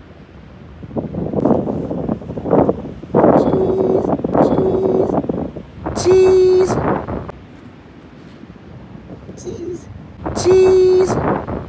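A young child talks loudly close by.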